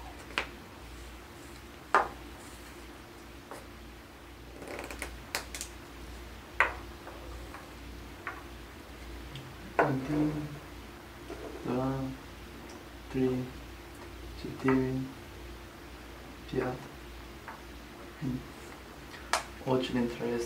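Wooden nesting dolls click and knock on a table.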